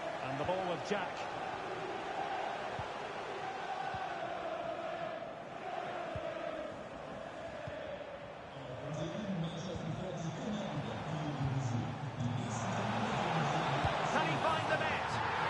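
A large crowd roars and murmurs steadily.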